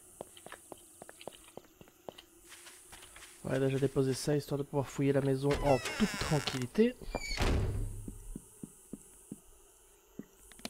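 Footsteps tap steadily on the ground.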